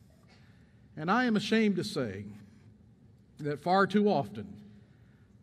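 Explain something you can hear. An elderly man speaks with animation through a microphone in a reverberant hall.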